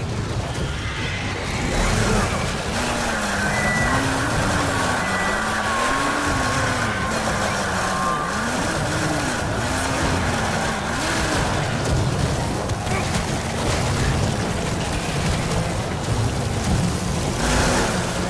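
Zombies snarl and groan.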